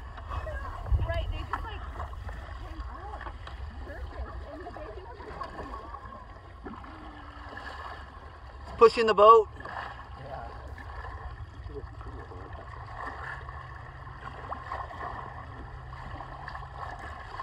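Water laps gently against the hull of a boat.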